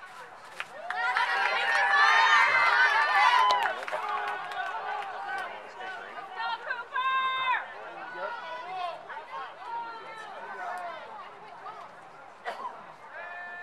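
Young women cheer and chant together outdoors.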